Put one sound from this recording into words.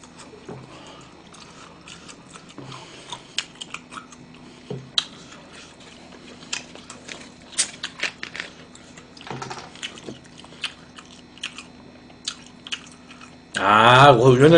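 A young man chews food with wet smacking sounds close by.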